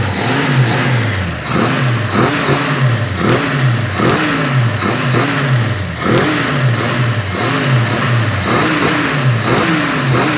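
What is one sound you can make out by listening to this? An engine revs up in short bursts and drops back again and again, heard up close.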